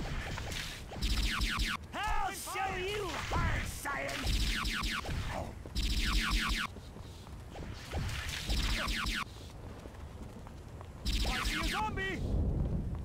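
Loud energy blasts burst in short bursts.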